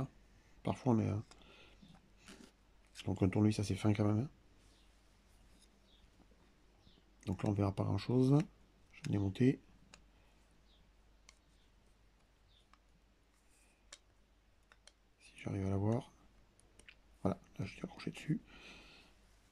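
A metal rod clicks and scrapes against a small metal part.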